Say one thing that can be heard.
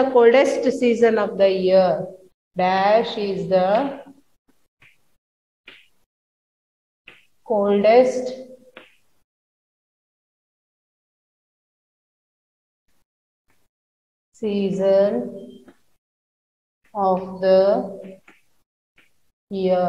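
A woman speaks clearly and steadily, close by.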